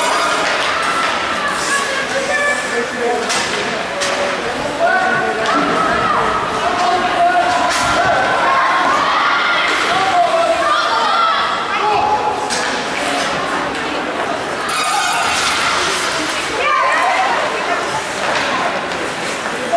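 Ice hockey sticks clack against a puck.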